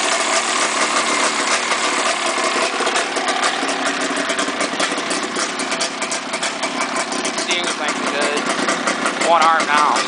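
A two-stroke snowmobile engine idles.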